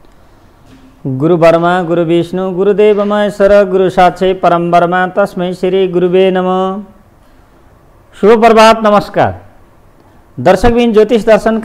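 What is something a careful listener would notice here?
A man speaks calmly and clearly into a microphone.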